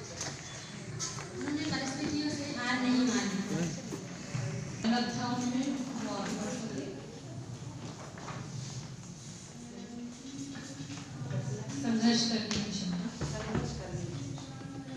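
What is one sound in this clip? A woman speaks into a microphone, heard through a loudspeaker in an echoing room.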